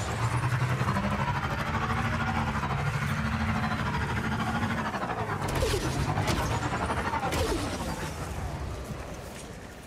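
A hovering bike's engine hums steadily, then fades away.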